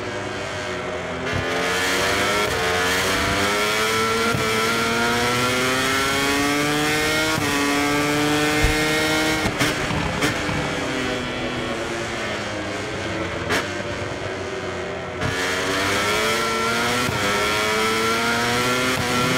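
A racing motorcycle engine screams, rising in pitch as it accelerates and dropping as it shifts gears and brakes.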